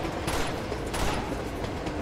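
A gunshot rings out.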